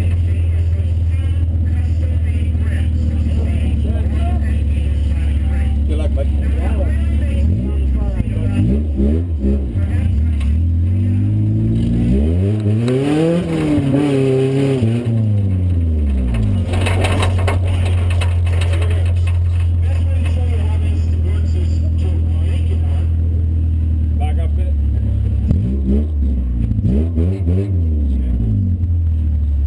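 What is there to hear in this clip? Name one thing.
A car engine idles loudly and roughly close by.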